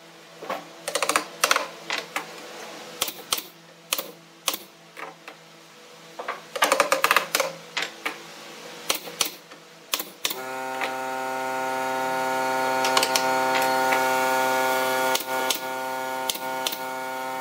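A pneumatic nail gun fires nails into wood.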